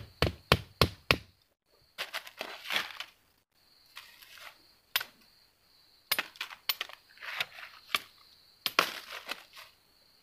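A machete chops and scrapes at the ground.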